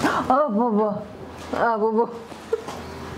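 A young woman cries out in a wavering voice.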